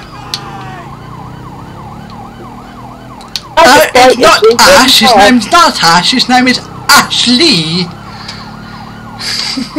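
A police siren wails in quick repeating sweeps.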